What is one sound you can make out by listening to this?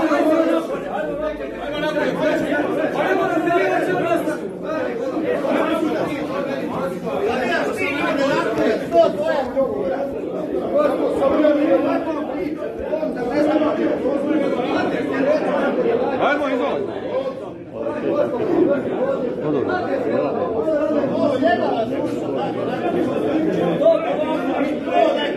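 A crowd of men talk and shout over each other in a large echoing hall.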